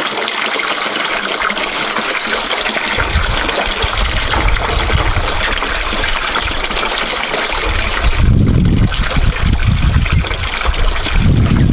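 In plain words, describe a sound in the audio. Hands splash and rub something in water.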